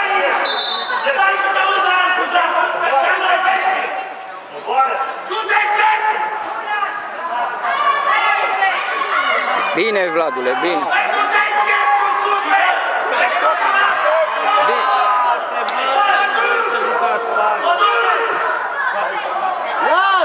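A crowd of children and adults shouts and cheers in a large echoing hall.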